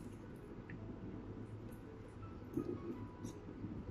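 A young woman chews and smacks her lips while eating.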